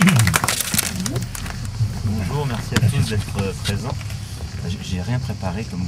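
A man speaks loudly to a crowd.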